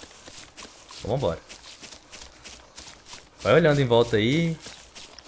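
Footsteps rustle through undergrowth at a steady pace.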